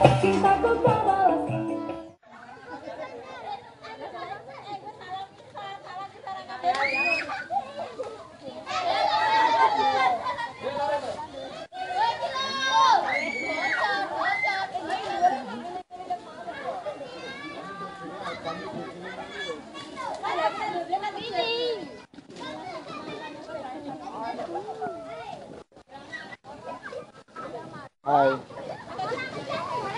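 A crowd of young people chatters and calls out nearby.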